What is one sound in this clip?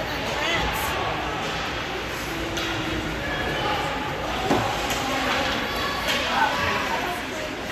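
Skates scrape and glide across the ice.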